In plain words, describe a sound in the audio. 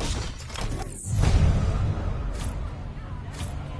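A car engine revs loudly as the car pulls away.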